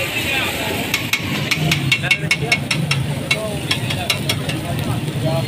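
A metal spatula clicks and scrapes rapidly against a griddle.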